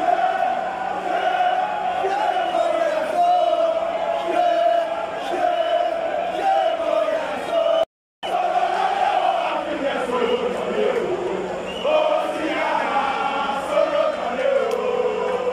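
A large crowd of football fans chants in unison outdoors.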